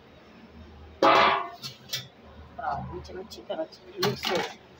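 A metal pan clanks on a hard surface.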